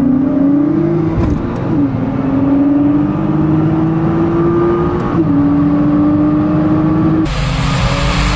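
A sports car engine revs loudly alongside, rising in pitch through the gears.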